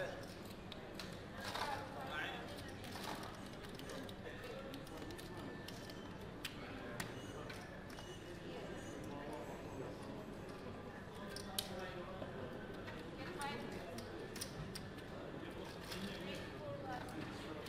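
Gaming chips click and clatter against each other.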